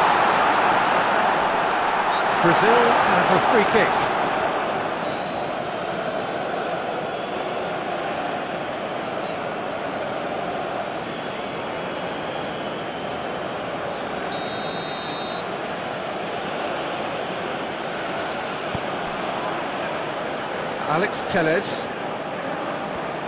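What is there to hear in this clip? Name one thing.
A large crowd roars steadily, swelling early on and then settling.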